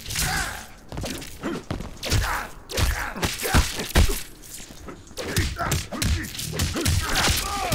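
Punches and kicks thud in a fighting game.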